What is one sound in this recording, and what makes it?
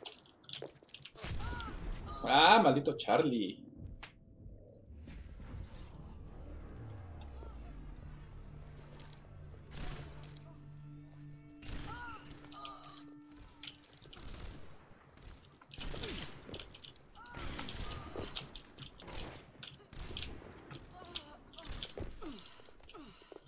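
A sniper rifle fires sharp shots.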